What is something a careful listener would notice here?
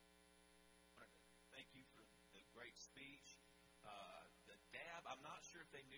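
A man speaks into a microphone over loudspeakers in a large echoing hall.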